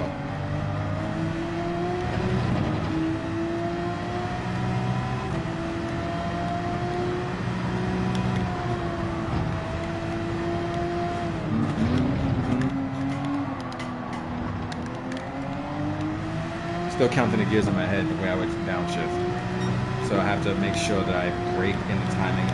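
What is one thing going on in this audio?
A racing car engine roars steadily, its pitch dropping as the car slows for a bend and rising again as it speeds up.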